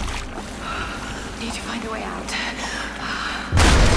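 Water rushes and churns.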